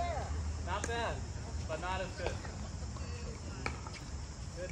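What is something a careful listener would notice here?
A paddle pops against a plastic ball.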